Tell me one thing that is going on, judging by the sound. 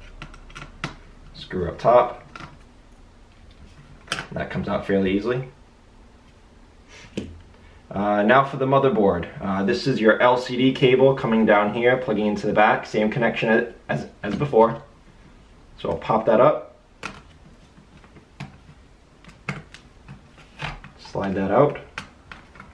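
Small plastic parts click and snap as they are pried loose.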